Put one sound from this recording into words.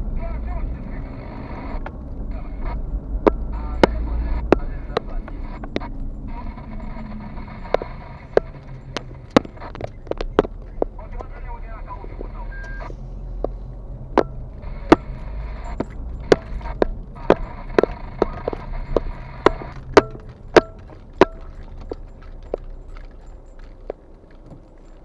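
A car engine hums low as the car drives slowly.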